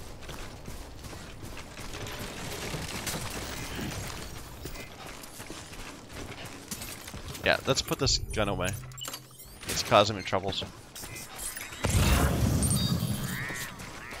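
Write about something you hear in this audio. Heavy footsteps tread over grass and ground.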